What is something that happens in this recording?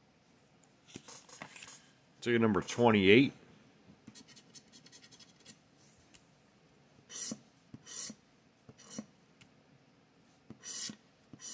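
A plastic scraper scratches across a paper ticket in short, rough bursts.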